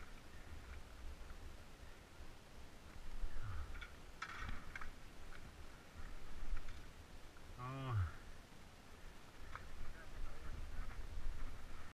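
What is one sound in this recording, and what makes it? Mountain bike tyres rumble and crunch over bumpy grass and dirt.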